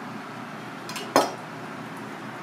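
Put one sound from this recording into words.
A knife is set down on a cutting board with a knock.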